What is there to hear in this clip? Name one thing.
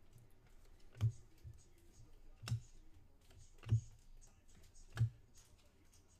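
Trading cards tap sharply as they are handled.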